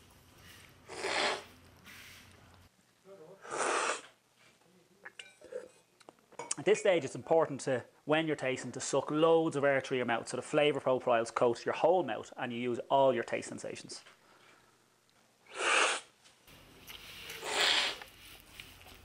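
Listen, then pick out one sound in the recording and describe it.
A man slurps loudly from a spoon.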